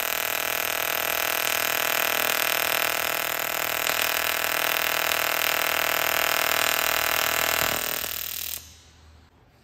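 A welding torch buzzes and crackles steadily.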